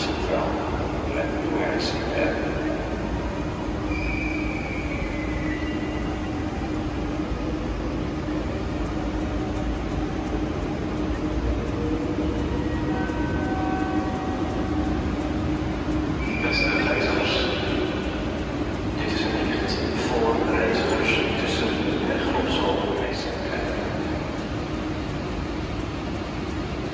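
A stationary train hums steadily under a large echoing roof.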